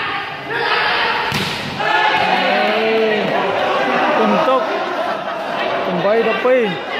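A crowd of young people shouts and cheers in a large echoing hall.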